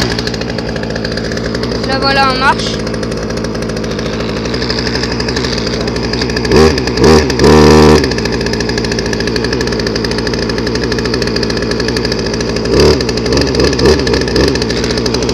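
A chainsaw engine idles close by with a steady, buzzing rumble.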